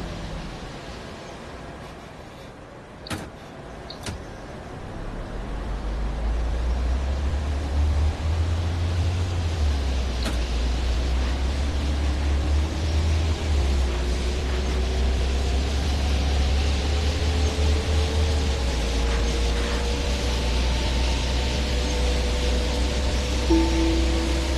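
A bus engine rumbles low and grows louder as the bus speeds up.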